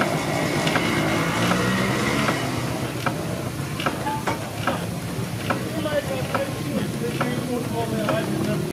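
A steam engine chuffs with a steady, even beat.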